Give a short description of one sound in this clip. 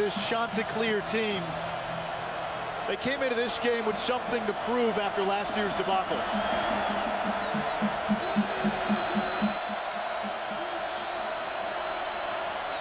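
A large crowd roars in a big stadium.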